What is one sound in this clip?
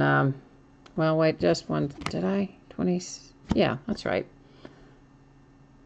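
A paper card rustles softly as a hand picks it up and sets it down.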